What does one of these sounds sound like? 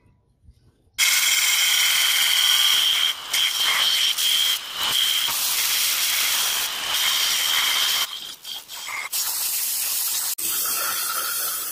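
A belt grinder whines loudly as steel is pressed against its belt, hissing and rasping.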